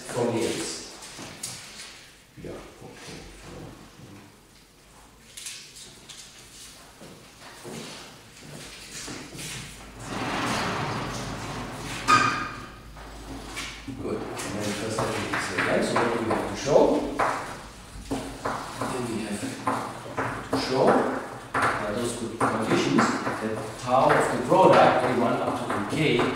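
An elderly man lectures calmly into a microphone in an echoing room.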